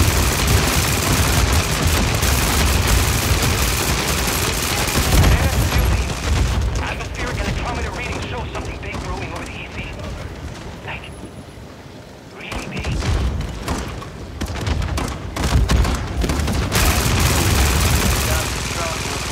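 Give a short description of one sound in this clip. Rapid gunfire rattles loudly with heavy booming blasts.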